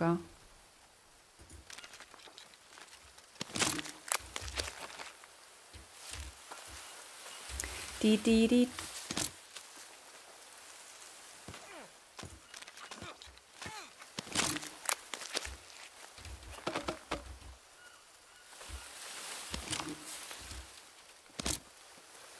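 Footsteps rustle through dense leaves and undergrowth.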